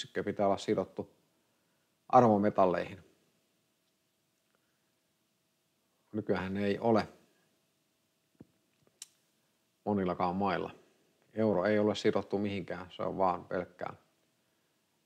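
A middle-aged man speaks calmly into a microphone, close by, in short bursts with pauses.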